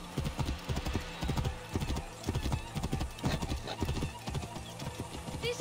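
Hooves clop steadily on a stone path as a horse trots.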